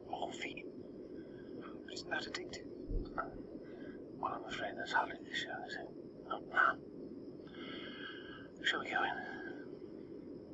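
A middle-aged woman speaks in a worried voice nearby.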